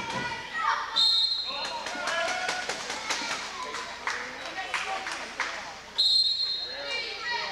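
A referee blows a sharp whistle in an echoing hall.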